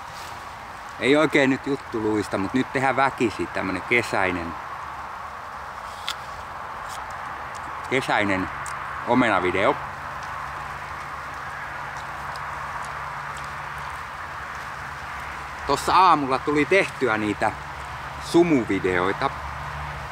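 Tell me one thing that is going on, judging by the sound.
A middle-aged man talks calmly and closely, with long pauses.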